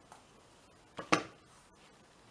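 A frame knocks down onto a table.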